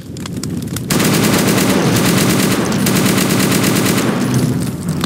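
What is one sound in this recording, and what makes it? A rifle fires in a rapid burst of shots.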